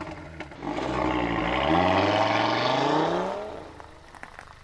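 A car engine revs up.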